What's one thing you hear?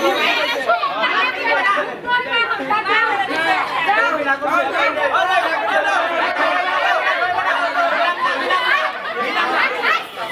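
A crowd of young men talk and laugh loudly close by.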